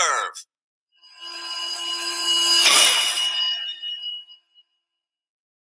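A short swelling musical sting rings out and fades.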